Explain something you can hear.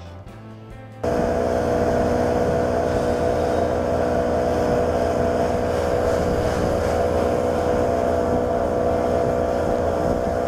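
An outboard motor roars steadily at speed.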